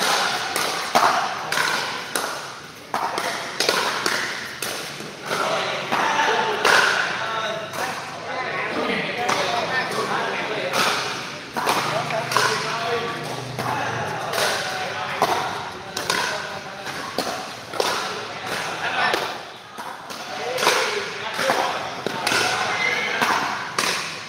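Paddles hit a plastic ball with sharp pops, back and forth.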